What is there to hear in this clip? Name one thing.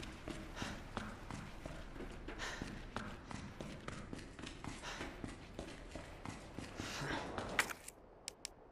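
Footsteps run.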